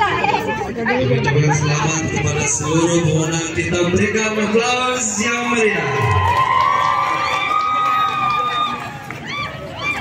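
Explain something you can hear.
A group of women call out together outdoors.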